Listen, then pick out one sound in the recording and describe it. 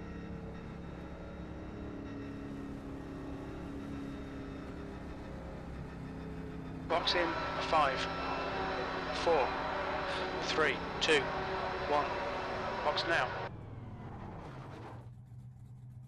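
A race car engine roars and slowly winds down.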